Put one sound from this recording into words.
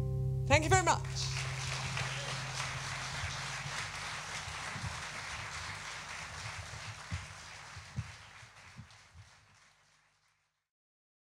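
An audience applauds and slowly fades away.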